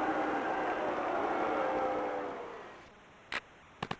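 A crowd roars loudly, then fades away.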